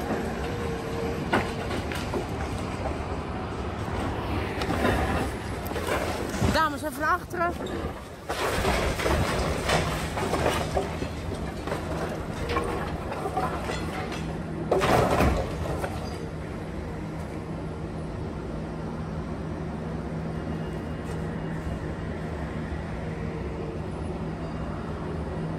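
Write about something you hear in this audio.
A diesel excavator engine rumbles.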